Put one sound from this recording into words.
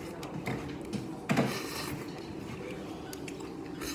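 A man slurps soup from a spoon.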